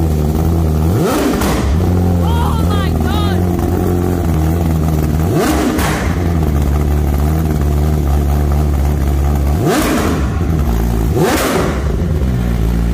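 An inline-four superbike with a full race exhaust revs in sharp blips.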